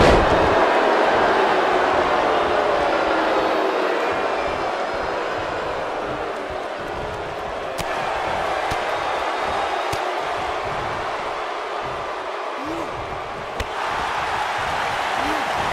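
A large crowd roars and cheers steadily in a big echoing arena.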